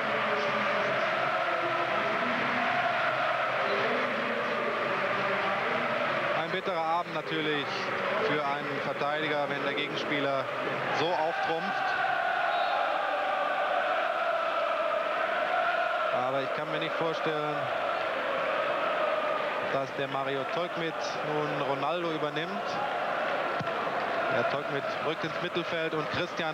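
A large stadium crowd chants and sings loudly in unison.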